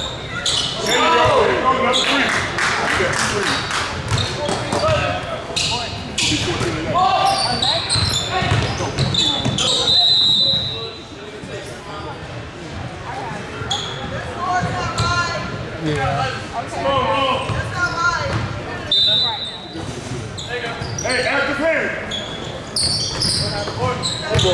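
A crowd of spectators chatters and shouts, echoing in a large hall.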